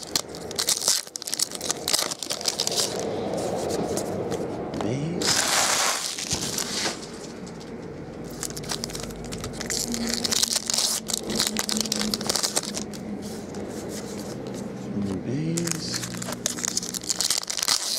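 A foil pack tears open.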